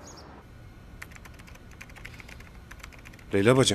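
Computer keys click rapidly.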